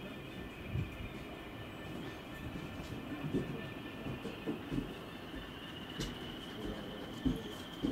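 Steel wheels clank over rail joints.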